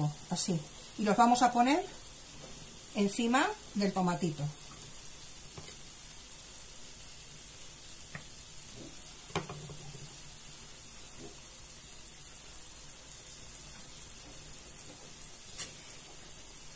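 A sauce simmers and bubbles softly in a pan.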